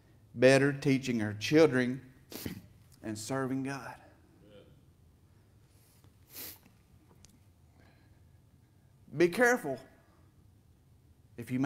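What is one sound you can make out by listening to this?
A middle-aged man preaches into a microphone, speaking emphatically with long pauses.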